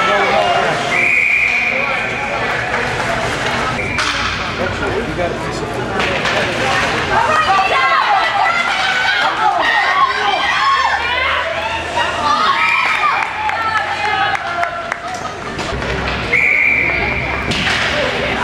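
A referee's whistle blows short blasts.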